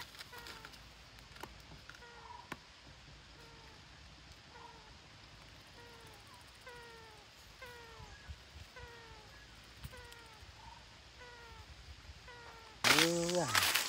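Parrots chirp with short, repeated falling calls.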